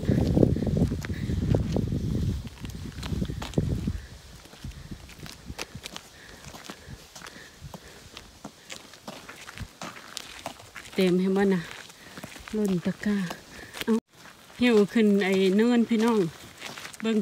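Footsteps crunch on a gravel road.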